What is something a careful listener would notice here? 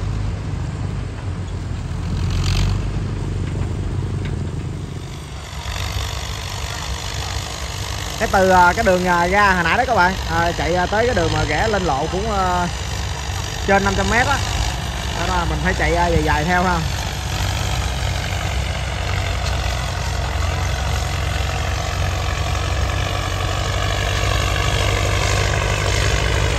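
Tractor engines rumble steadily as they pull along a dirt track.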